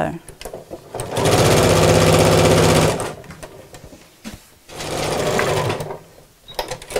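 A sewing machine runs in quick, steady bursts.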